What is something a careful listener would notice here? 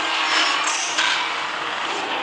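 A heavy blow lands with a sharp crack.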